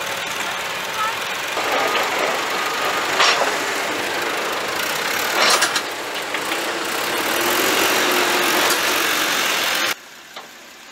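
A tractor engine rumbles loudly.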